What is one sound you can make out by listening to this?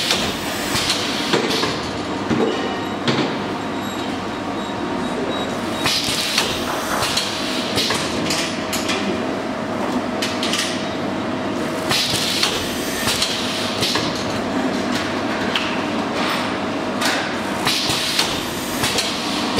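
A machine arm clanks and knocks as it moves.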